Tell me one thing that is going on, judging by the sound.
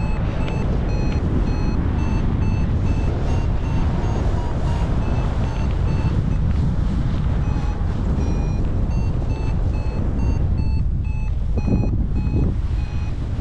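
A flight instrument beeps in quick, regular, high-pitched chirps.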